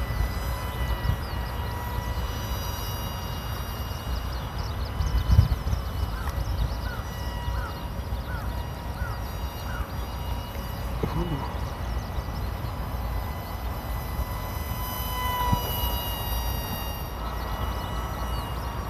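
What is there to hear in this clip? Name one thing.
A small jet engine whines steadily, rising and falling in pitch as it passes.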